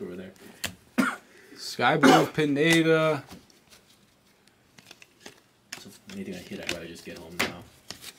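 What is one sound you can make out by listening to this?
Trading cards flick and rustle as a hand shuffles through them.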